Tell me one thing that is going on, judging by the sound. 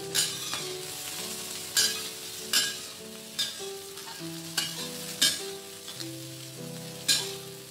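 A metal spatula scrapes and clanks against a wok.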